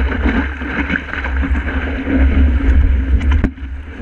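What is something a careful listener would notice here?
A paddle splashes in the water.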